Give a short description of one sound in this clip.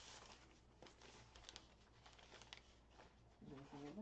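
Paper crinkles as a wrapped bundle is handled.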